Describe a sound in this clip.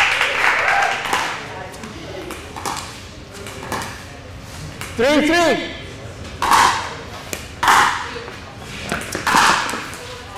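Spectators cheer and clap in bursts.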